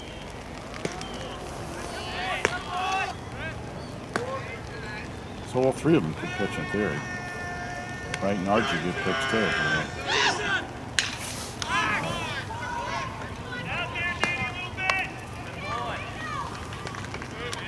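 Players shout and cheer from a distance outdoors.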